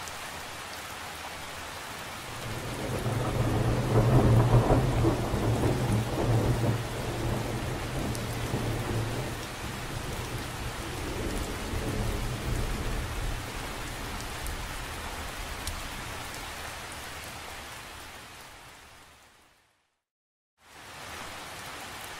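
Rain patters steadily on the surface of a lake outdoors.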